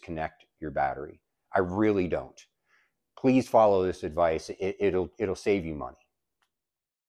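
A man speaks to the microphone in a calm, confident manner.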